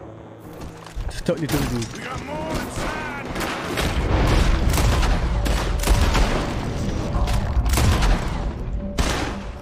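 Gunshots crack repeatedly in an echoing hall.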